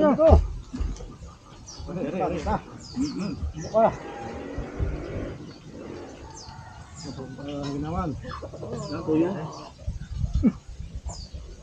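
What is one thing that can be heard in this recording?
Several men talk in conversation.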